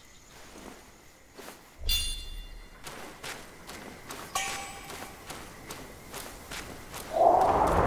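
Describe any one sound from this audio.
Footsteps crunch on rough, stony ground.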